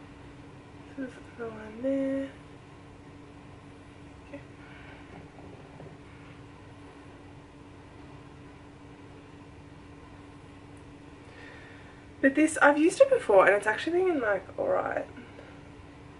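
A young woman speaks calmly close by.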